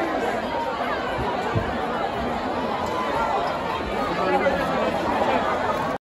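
A large crowd of young men and women chatters and shouts outdoors.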